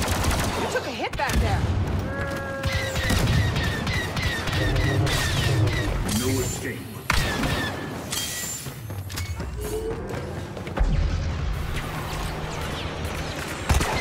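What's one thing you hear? Laser blasters fire in rapid bursts.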